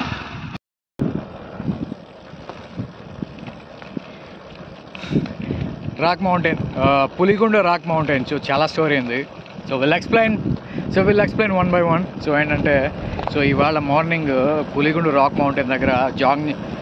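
A man talks with animation close to a microphone, outdoors.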